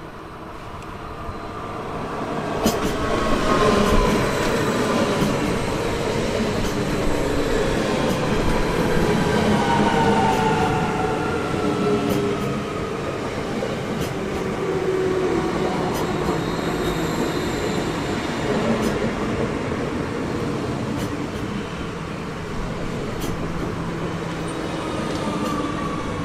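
An electric train rumbles close by as it pulls in and slows down.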